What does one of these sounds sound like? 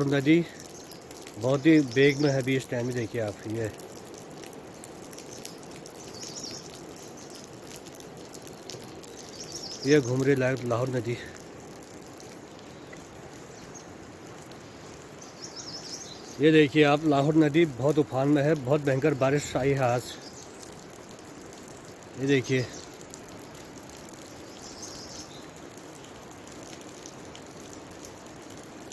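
Wind rustles through leafy trees outdoors.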